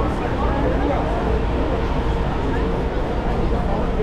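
A subway train rumbles along its tracks with passengers aboard.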